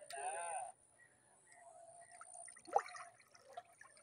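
A fish splashes in the water near the bank.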